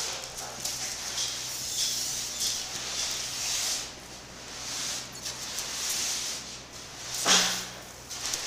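Plastic stretch wrap crackles and rustles as it is pulled around a stack of boxes.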